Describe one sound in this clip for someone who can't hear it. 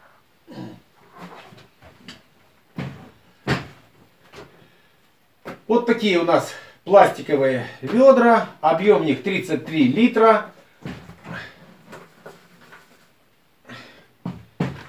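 A plastic bucket knocks and rattles as a man handles it.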